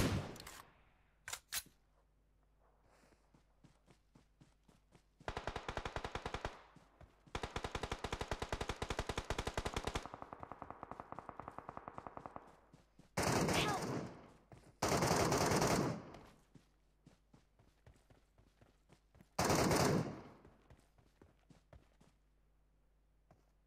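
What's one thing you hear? Footsteps thud quickly over grass.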